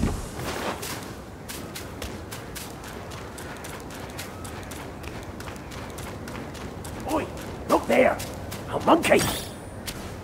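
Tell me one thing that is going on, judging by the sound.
Footsteps run quickly over dry, gravelly ground.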